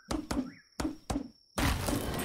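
An axe chops into wood with sharp knocks.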